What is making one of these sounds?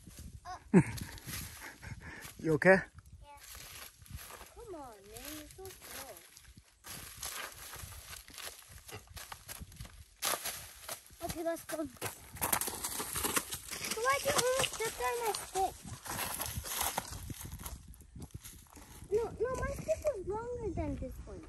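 Young children talk and call out excitedly outdoors.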